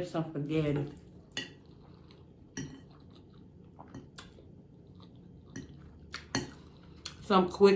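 A fork scrapes and clicks against a plate.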